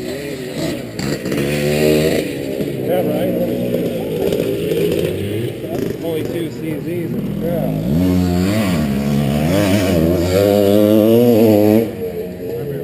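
A motorcycle engine revs up and down loudly close by.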